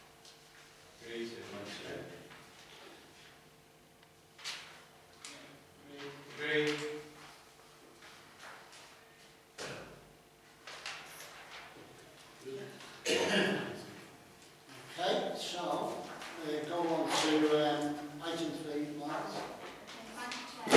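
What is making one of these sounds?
A middle-aged woman speaks calmly into a microphone in a room with light echo.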